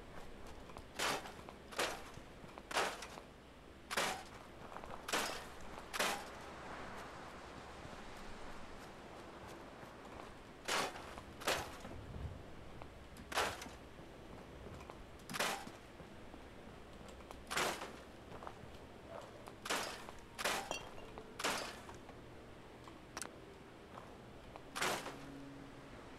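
Short crunching clatters of junk being broken apart sound again and again.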